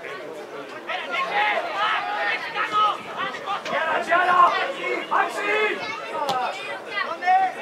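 A man shouts instructions loudly nearby.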